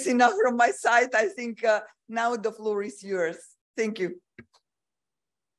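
A woman speaks into a microphone.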